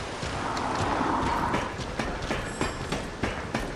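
Footsteps clatter on ladder rungs.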